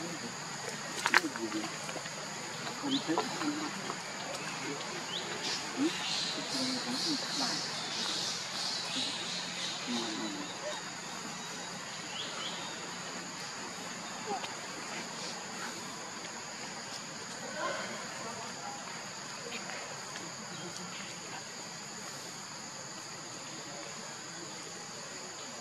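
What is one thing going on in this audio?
A monkey chews and crunches on leaves up close.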